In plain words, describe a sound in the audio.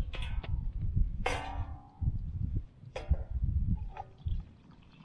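A man's hands clink small metal pieces together.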